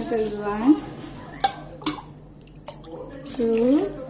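Water pours from a bowl into a metal pot.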